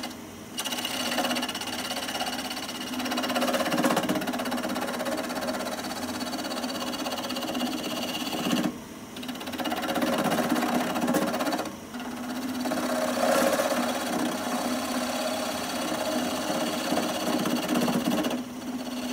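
A gouge scrapes and shaves the turning wood.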